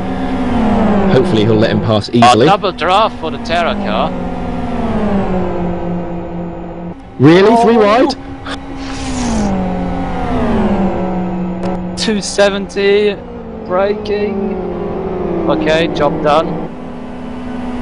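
Tyres squeal as cars take corners.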